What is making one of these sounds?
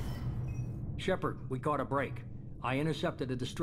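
A man speaks calmly and deeply, heard close through a microphone.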